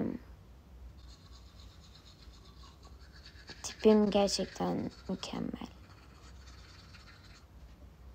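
A toothbrush scrubs against teeth.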